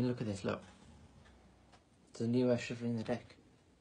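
Playing cards slide softly across cloth.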